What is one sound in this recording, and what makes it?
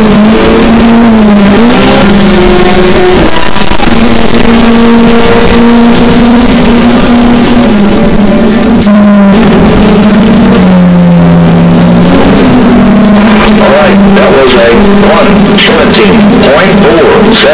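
Racing car engines roar as the cars speed past.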